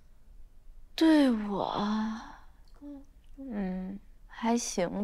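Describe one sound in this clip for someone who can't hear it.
A young woman speaks in a slow, drawn-out, musing voice, close by.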